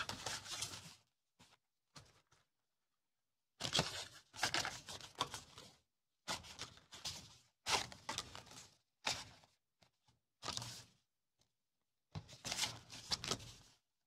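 Hands rustle through a stack of paper stickers.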